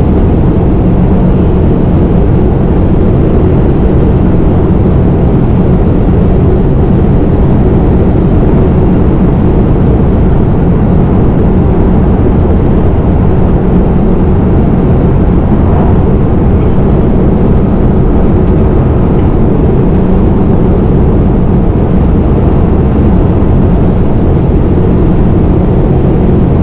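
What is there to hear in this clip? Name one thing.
A truck engine rumbles steadily as it drives along.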